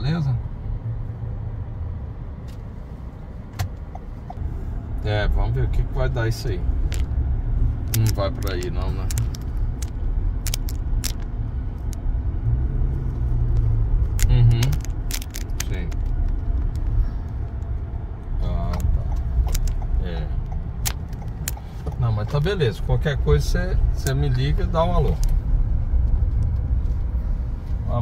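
A car rumbles steadily along the road, heard from inside.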